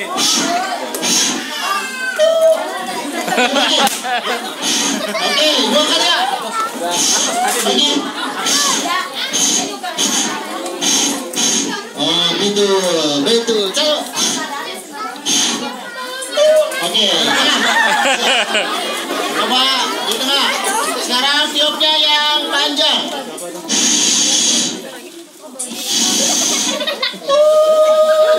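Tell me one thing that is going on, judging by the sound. A man talks animatedly through a loudspeaker microphone outdoors.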